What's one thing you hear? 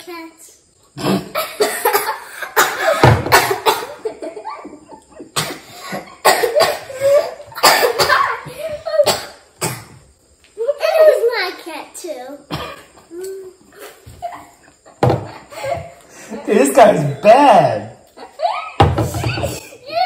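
Children laugh loudly close by.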